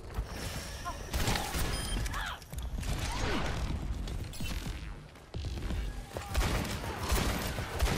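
Gunshots fire in a video game.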